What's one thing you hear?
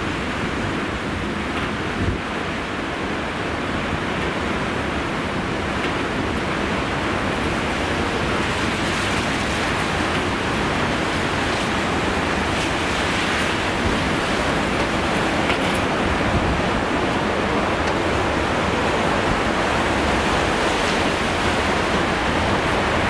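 Rough surf crashes and roars steadily against rocks and a sea wall.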